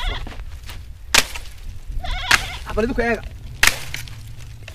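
A man strikes a thorny bush with a stick.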